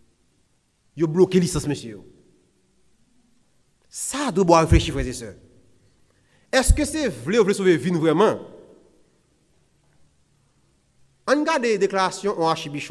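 A man speaks with emphasis through a microphone, in bursts with pauses.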